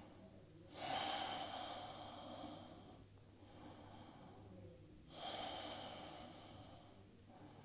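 A man breathes out slowly and deeply.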